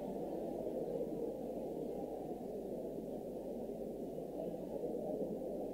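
A large crowd of men and women talks and calls out together, sounding muffled.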